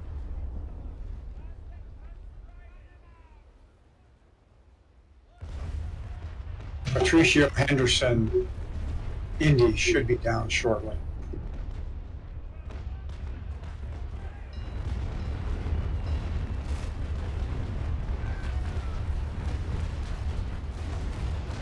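Waves splash and wash against wooden ships.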